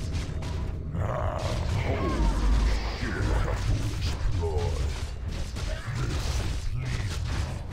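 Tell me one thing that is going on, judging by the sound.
Game spell effects crackle and whoosh during a battle.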